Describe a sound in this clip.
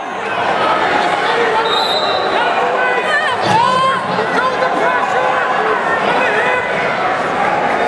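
A crowd of men and women shouts and cheers in a large echoing hall.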